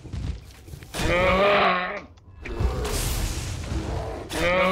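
A bear growls loudly.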